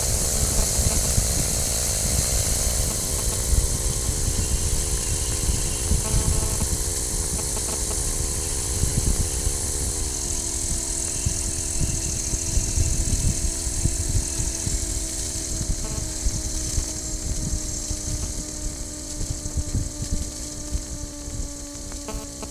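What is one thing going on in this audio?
An engine drones steadily and drops in pitch in steps.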